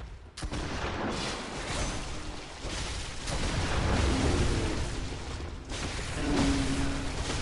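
A monster roars and growls loudly.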